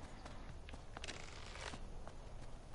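A bowstring creaks as it is drawn back.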